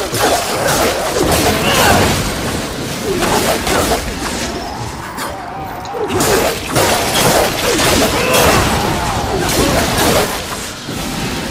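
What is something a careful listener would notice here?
Blades swish and clash in a fast fight.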